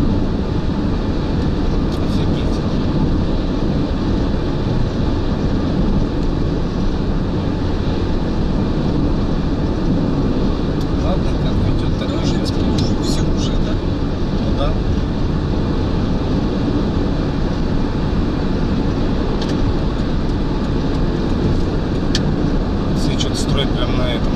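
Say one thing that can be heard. Wind roars loudly past a car speeding along a highway.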